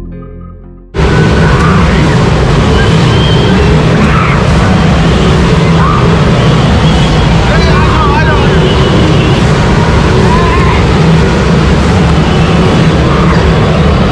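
Water splashes and sloshes as people wade in a pool.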